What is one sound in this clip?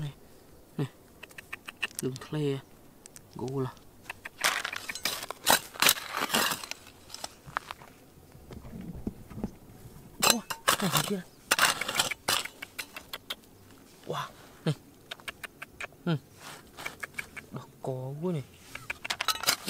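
Small stones and grit rattle as fingers sift through the dirt.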